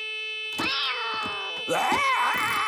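A cartoonish male voice yelps in pain.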